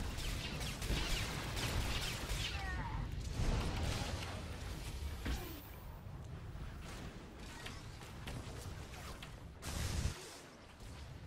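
Heavy blasts thump and boom.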